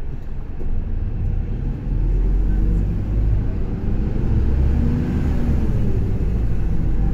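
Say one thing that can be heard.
A bus engine revs up louder as the bus pulls away.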